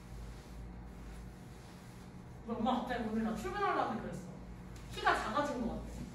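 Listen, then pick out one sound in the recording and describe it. An eraser rubs softly across a chalkboard.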